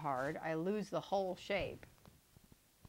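A woman speaks calmly and close to a microphone.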